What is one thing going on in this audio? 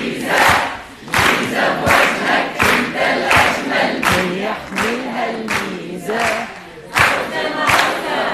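An audience claps along in a steady rhythm in a large room.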